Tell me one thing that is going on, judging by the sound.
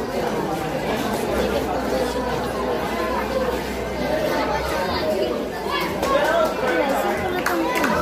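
A crowd of young people chatters and shouts loudly all around.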